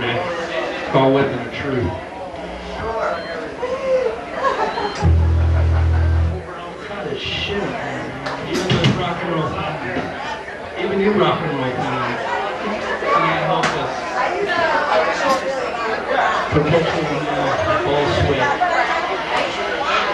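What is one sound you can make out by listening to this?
A band plays loud live music in an echoing room.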